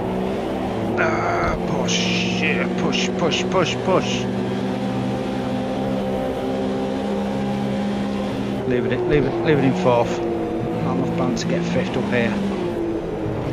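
Another race car engine roars close by.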